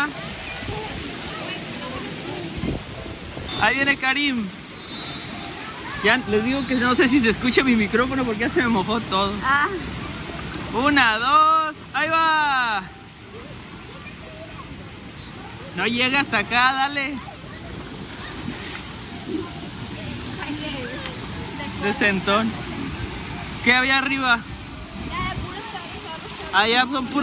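A woman talks cheerfully nearby.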